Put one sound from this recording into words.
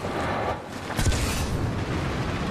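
A jet pack roars in a short burst.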